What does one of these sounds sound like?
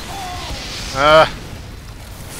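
A man shouts loudly close to a microphone.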